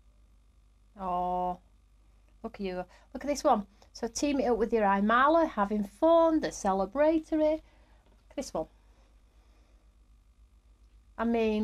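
A woman talks calmly and clearly into a close microphone.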